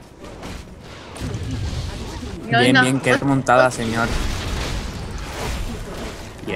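Magic blasts and weapon hits clash in bursts of noise.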